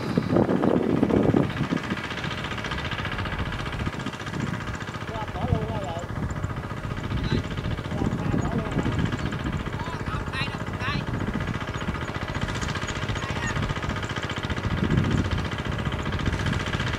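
A two-wheel walking tractor engine chugs in the distance, working through a flooded field.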